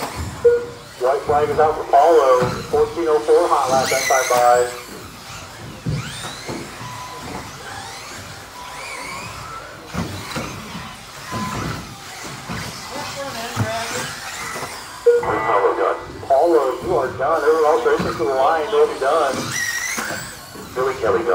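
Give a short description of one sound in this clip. A small electric model car whines as it speeds around and its motor rises and falls in pitch.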